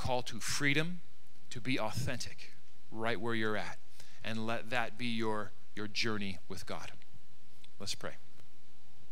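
A man speaks calmly into a microphone through loudspeakers.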